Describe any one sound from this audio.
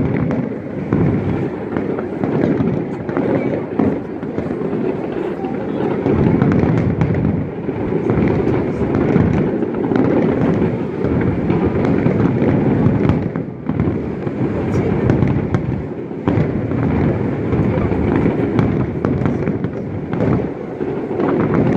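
Fireworks boom and crackle continuously in the distance.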